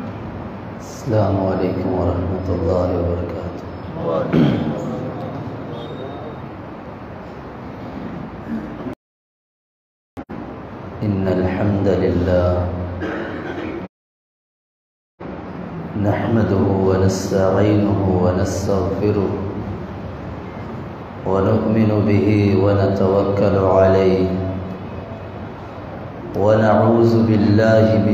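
A man chants in a melodic voice through a microphone, with short pauses.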